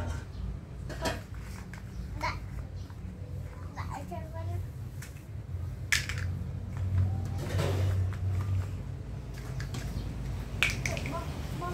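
Plastic toy pieces click together.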